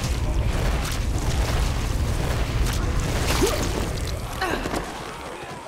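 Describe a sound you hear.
Blows thud against bodies in quick succession.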